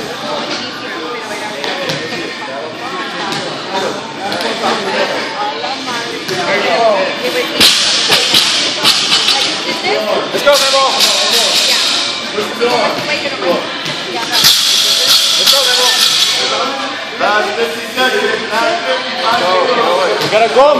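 Men and women talk and shout in a large echoing hall.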